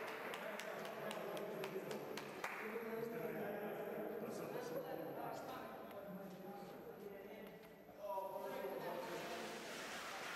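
Men and women chat nearby in an echoing hall.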